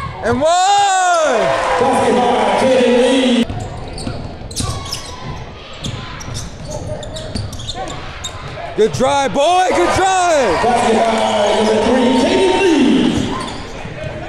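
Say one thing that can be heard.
A crowd cheers loudly in a large echoing gym.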